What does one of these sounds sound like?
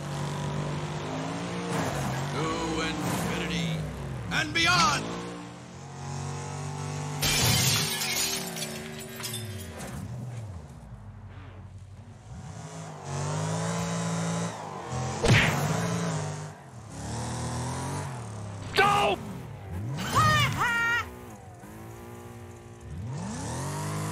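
Tyres skid and screech.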